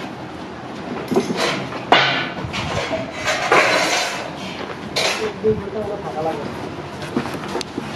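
A blade scrapes the skin off a vegetable.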